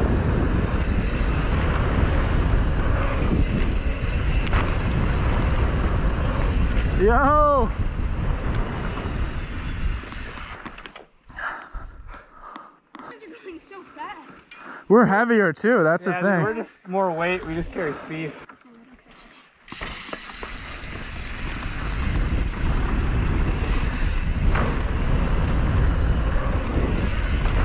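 Bicycle tyres roll and rattle over a dirt trail.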